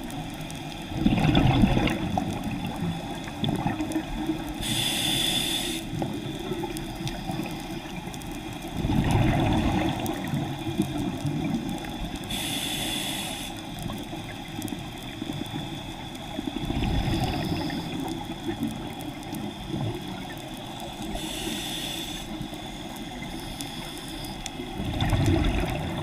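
A diver breathes out through a regulator, with bubbles rumbling and gurgling underwater.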